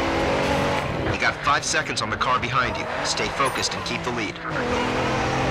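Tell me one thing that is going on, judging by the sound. Tyres squeal on asphalt as a sports car slides through a corner.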